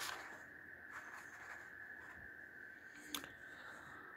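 A sheet of stiff paper rustles as a hand lays it down.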